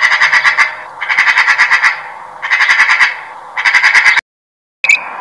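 A magpie chatters in rapid harsh bursts.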